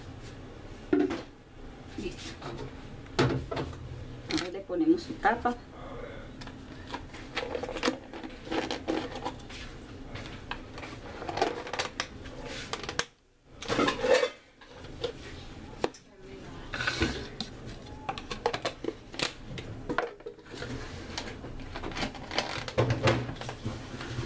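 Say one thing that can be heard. Plastic lids knock and rattle against plastic cups.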